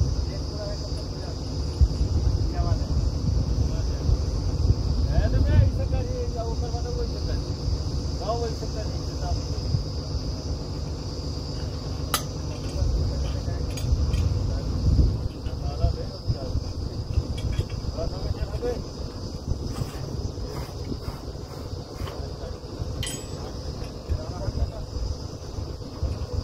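A drilling rig's diesel engine rumbles steadily outdoors.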